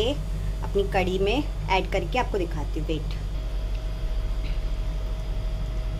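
Hot spiced oil hisses as it is poured into a curry.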